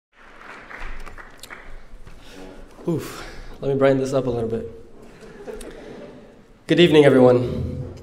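A young man speaks clearly into a microphone.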